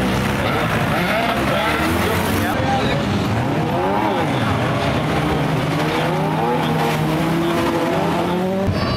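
Several car engines roar and rev loudly close by.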